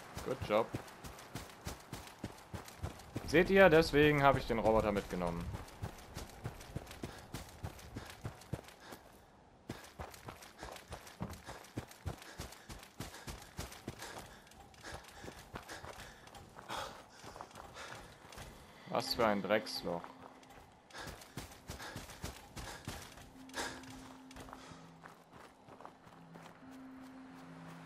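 Footsteps crunch steadily over dry ground.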